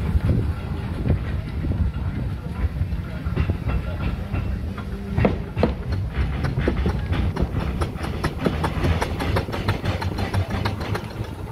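A steam engine chuffs rhythmically up close as it rolls along.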